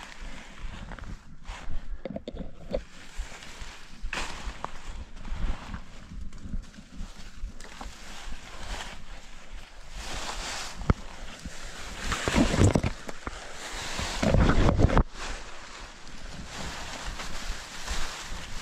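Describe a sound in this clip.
Bicycle tyres crunch over dry leaves and twigs.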